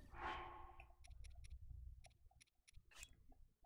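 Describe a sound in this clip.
Short menu clicks tick quickly, one after another.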